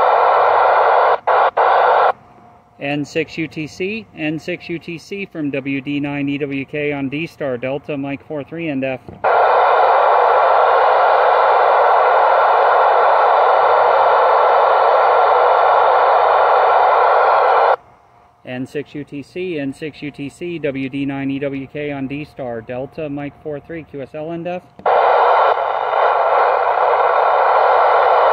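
A radio speaker hisses with loud, steady static that cuts in and out.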